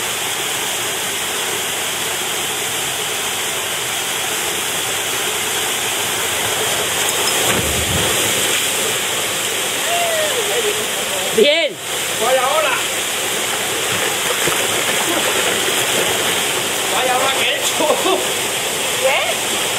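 A waterfall pours into a rock pool.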